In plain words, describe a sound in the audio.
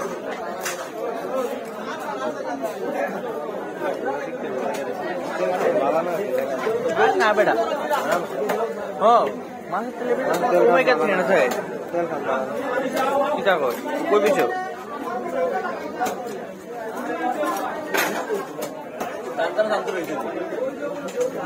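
A knife chops through fish with sharp, repeated thuds.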